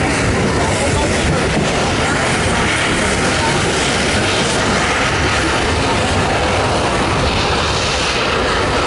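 Carriage wheels clatter over the rail joints.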